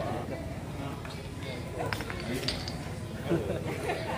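Wooden blocks clatter onto pavement.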